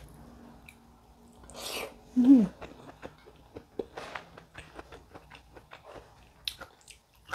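A young woman chews crunchy food close to a microphone.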